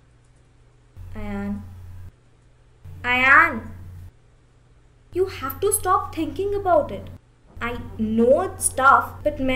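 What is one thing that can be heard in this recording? A young woman speaks loudly and with rising emotion, close by.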